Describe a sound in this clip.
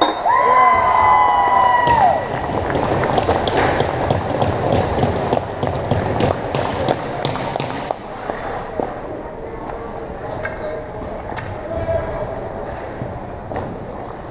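Skates scrape and carve across the ice.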